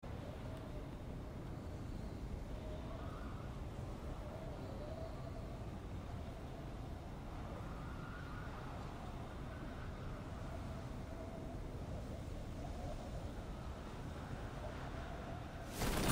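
Wind rushes past a skydiver in freefall.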